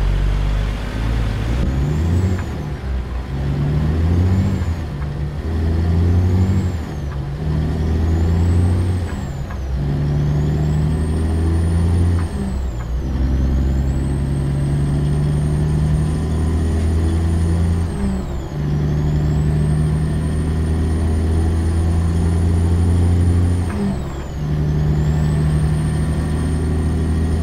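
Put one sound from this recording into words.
A truck's diesel engine rumbles and revs up through its gears.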